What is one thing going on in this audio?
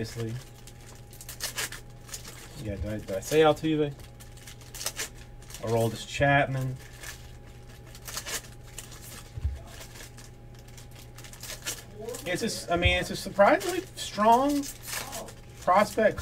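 Foil card wrappers crinkle and rustle as hands tear them open.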